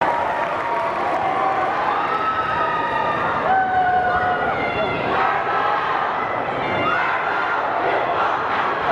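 A group of young people sing together in a large echoing hall, holding long notes.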